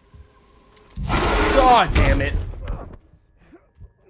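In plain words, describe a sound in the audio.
A loud harsh screech blares suddenly and dies away.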